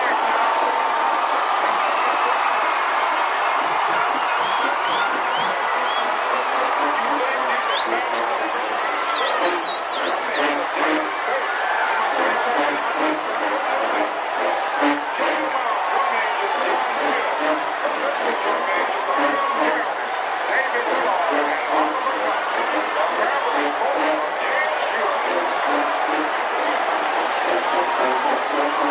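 A marching band with brass and sousaphones plays in a large echoing stadium.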